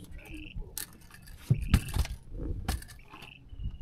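Small knocks and clatters sound on a boat deck.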